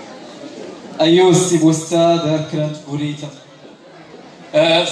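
A man speaks loudly through a loudspeaker in an echoing hall.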